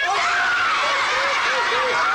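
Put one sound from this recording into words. A woman cries out in shock close by.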